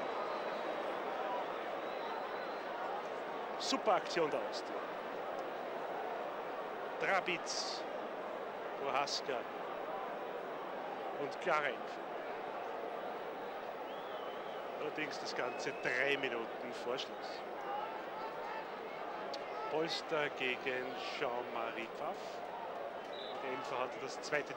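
A large stadium crowd murmurs and cheers steadily outdoors.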